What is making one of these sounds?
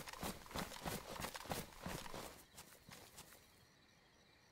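Footsteps rustle quickly through grass.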